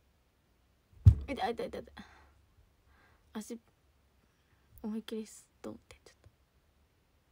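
A young woman speaks softly in short bursts, close by.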